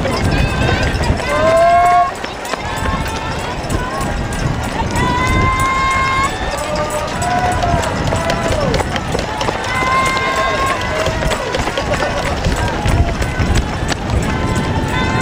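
A crowd of spectators cheers and shouts nearby outdoors.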